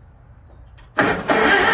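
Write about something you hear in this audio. A tractor engine roars loudly as it starts.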